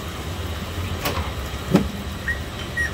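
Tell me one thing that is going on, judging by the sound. A steel rod clanks against a metal piston pin-fitting machine.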